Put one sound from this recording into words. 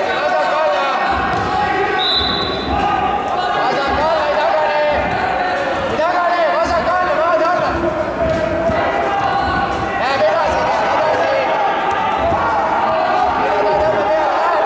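Shoes shuffle and squeak on a mat.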